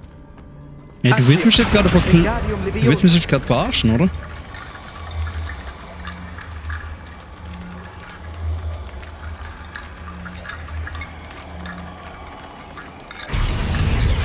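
Bones rattle and clatter as they are lifted by magic.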